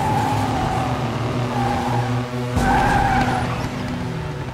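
Tyres skid on pavement.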